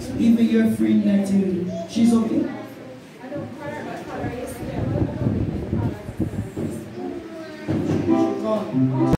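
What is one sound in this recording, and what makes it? A woman speaks with animation through a microphone and loudspeaker in an echoing room.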